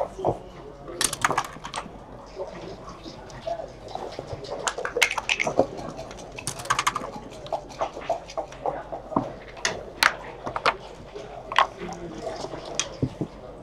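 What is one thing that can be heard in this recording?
Plastic checkers click and slide on a board.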